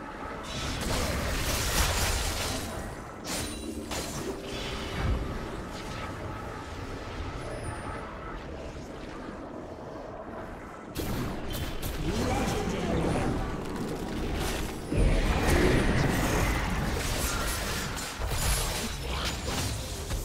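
Game spells crackle and blast in quick bursts.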